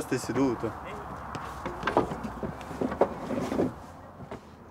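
A man speaks nearby outdoors.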